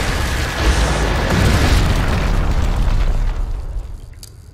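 An explosion roars and crackles with fire.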